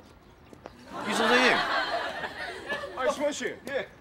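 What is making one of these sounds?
A young man shouts out excitedly.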